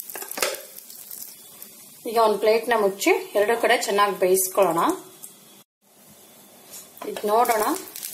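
A steel lid clinks onto a pan.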